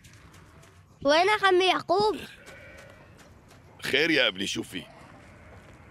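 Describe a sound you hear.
A young boy calls out loudly.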